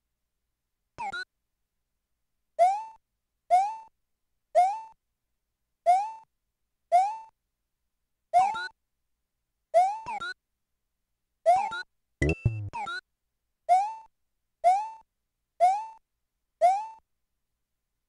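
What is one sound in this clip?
A short, bouncy game jump sound chirps again and again at a steady pace.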